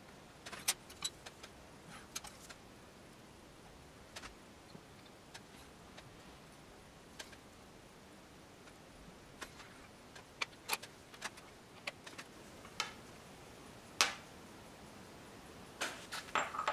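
Metal tweezers click and tap against small watch parts.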